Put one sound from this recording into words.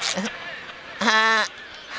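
A high, cartoonish male voice speaks cheerfully up close.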